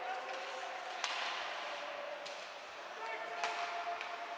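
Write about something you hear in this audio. Hockey sticks clack against the puck.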